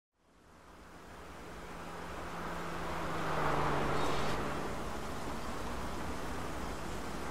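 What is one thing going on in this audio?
A car engine hums steadily, swelling then settling.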